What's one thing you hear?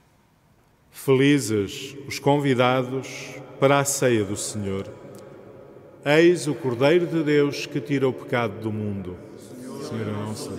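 A middle-aged man chants into a microphone in a large echoing hall.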